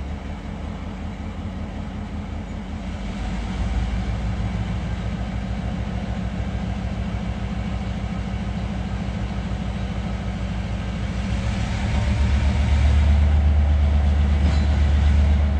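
Freight wagons rumble and clatter slowly along a rail track nearby, growing louder.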